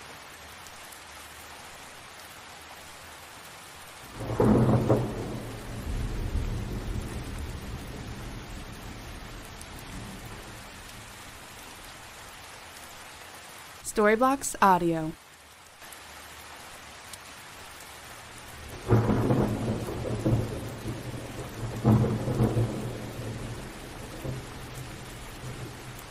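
Rain patters steadily on a window pane.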